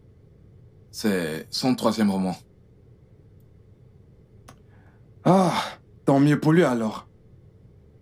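An older man speaks calmly nearby.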